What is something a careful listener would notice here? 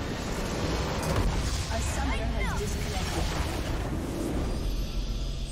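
A large structure explodes with a deep roar.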